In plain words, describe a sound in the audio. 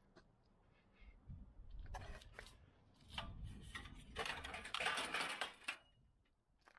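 Metal objects rattle and clank as they are pulled from a pile of scrap.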